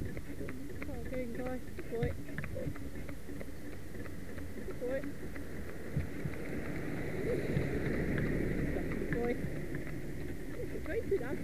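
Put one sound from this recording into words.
Carriage wheels rumble and rattle over the road.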